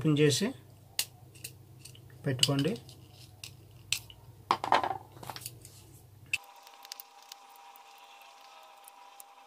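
A screwdriver clicks and scrapes against a small plastic fitting.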